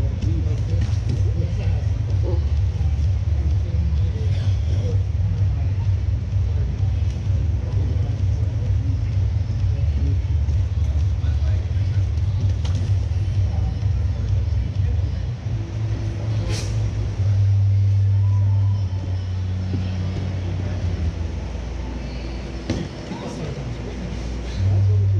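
Bodies shuffle and thud on padded mats.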